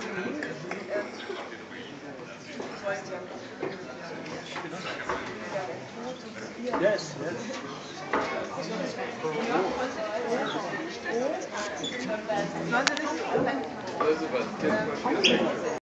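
An elderly man talks nearby.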